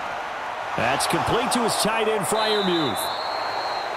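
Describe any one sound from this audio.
Football pads crash together in a tackle.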